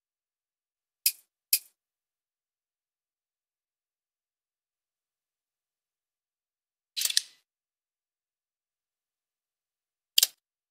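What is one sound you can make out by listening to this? Short, sharp menu clicks sound now and then as selections change.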